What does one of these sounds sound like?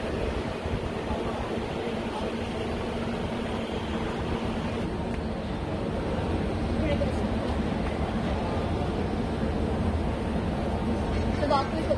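A metro train rumbles steadily along its tracks.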